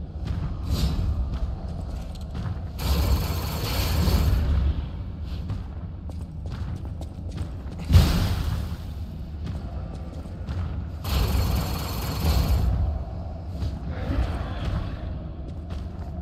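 A heavy blade swings and strikes with thudding impacts.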